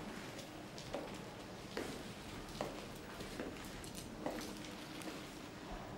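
A bag rustles as a man handles a zip.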